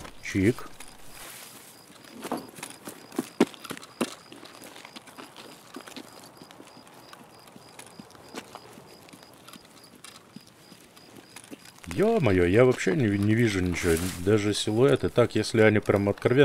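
Footsteps crunch steadily along a dirt path.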